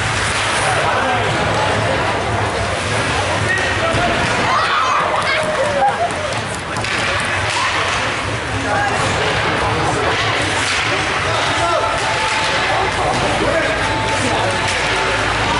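Ice hockey skates scrape and carve on ice.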